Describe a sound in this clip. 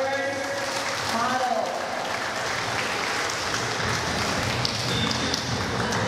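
A woman speaks through a loudspeaker in a large echoing hall.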